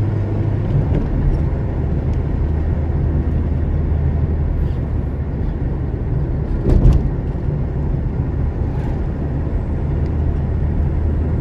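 Tyres roll on asphalt with a steady rumble.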